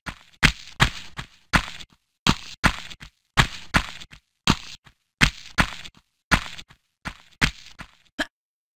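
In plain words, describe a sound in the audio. Footsteps patter quickly on a hard floor in an echoing space.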